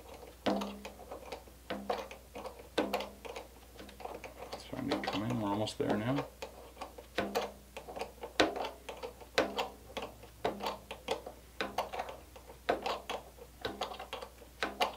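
Small tools tap and click against a hard surface.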